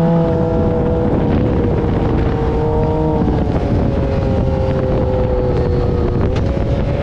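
Wind rushes past in a low roar.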